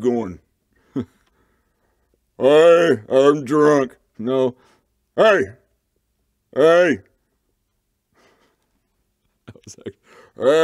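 A man speaks expressively in short bursts, close to a microphone, with silent pauses between lines.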